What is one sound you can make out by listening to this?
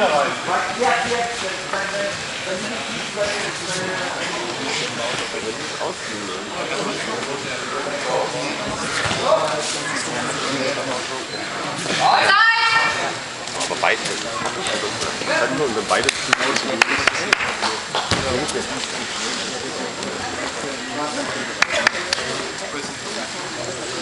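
A crowd of people chatter and call out in a large echoing hall.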